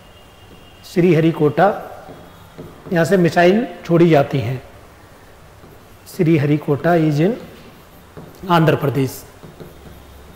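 A man speaks clearly into a close microphone in short phrases, like a teacher explaining.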